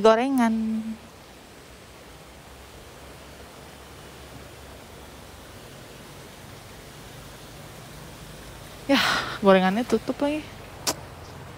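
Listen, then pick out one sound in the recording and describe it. A young woman speaks with animation, close to a phone microphone.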